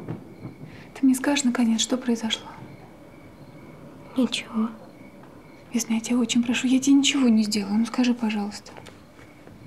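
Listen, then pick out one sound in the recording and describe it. A woman speaks softly and earnestly close by.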